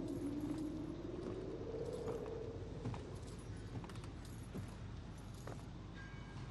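Footsteps and a cane knock on wooden boards.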